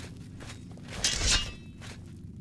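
A heavy weapon is drawn with a swishing scrape.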